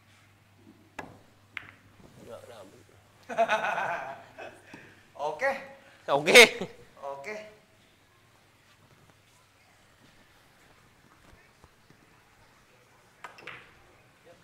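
A cue strikes a billiard ball with a sharp click.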